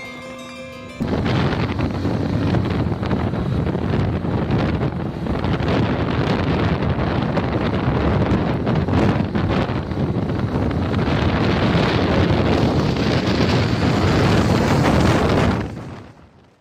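Wind roars loudly against a fast-moving microphone.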